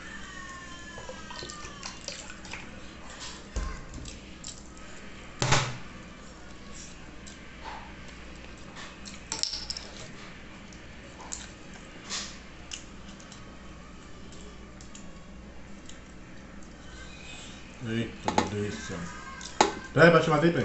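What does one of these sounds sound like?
A young man chews and smacks his lips loudly close by.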